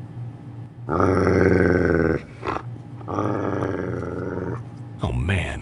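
Dogs growl and bark close by.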